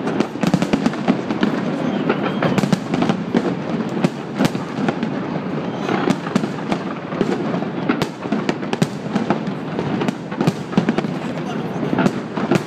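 Fireworks bang and crackle in rapid bursts outdoors.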